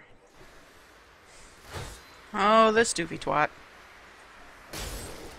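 Crackling magic lightning zaps in a video game.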